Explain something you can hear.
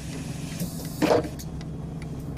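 Bus doors shut with a thud.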